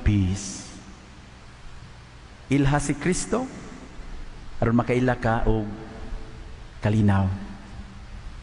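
A man speaks with animation into a microphone, echoing in a large hall.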